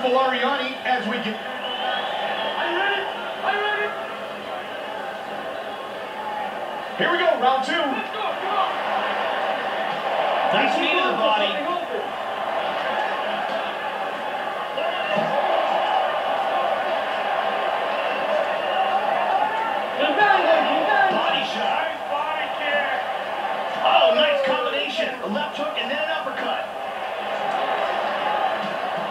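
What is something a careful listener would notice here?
A combat sports video game plays through television speakers.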